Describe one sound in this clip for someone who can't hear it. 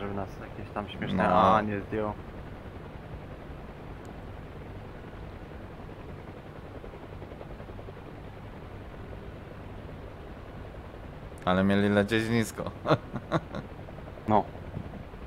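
A helicopter's engine and rotor drone steadily.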